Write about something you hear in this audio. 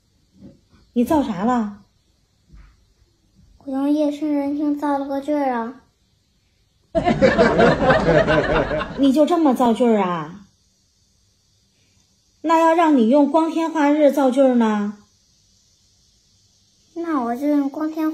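A young boy speaks, close by.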